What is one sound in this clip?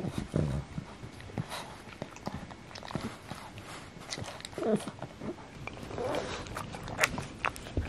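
A dog snorts and snuffles close by.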